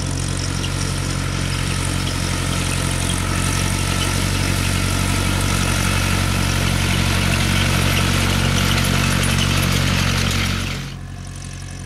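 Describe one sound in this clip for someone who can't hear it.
A hay rake whirs and rattles as it passes.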